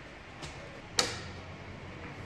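Metal pliers clink sharply against car parts.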